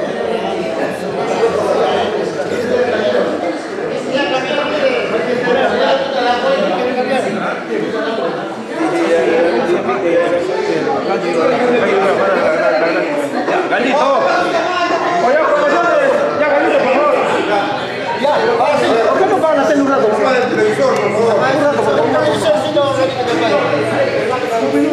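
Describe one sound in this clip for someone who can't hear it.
Many men talk and chatter at once, close by.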